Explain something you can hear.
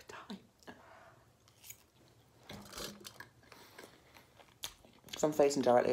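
A young woman chews food with wet smacking sounds.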